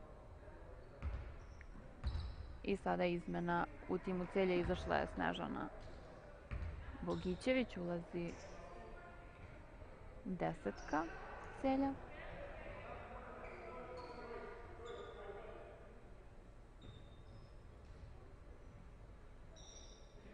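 A basketball bounces on a hard wooden floor in a large echoing hall.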